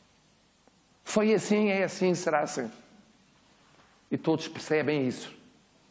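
An elderly man speaks with animation, in two short bursts.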